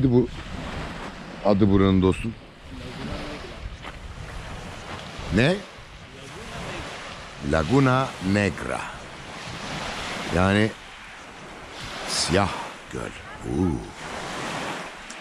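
Small waves lap gently against a pebbly shore.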